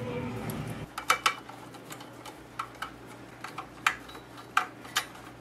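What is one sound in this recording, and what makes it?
A screwdriver clicks and scrapes against metal.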